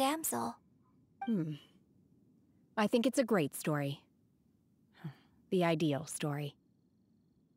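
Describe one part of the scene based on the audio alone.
A young woman speaks softly and calmly, close up.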